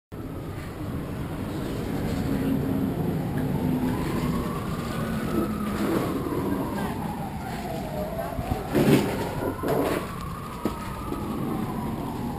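A bus engine rumbles steadily nearby.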